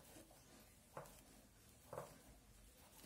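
Knitting needles click softly.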